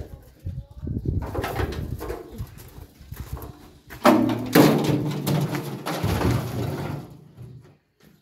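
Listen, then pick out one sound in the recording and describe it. A heavy hollow drum scrapes and rolls over gravel.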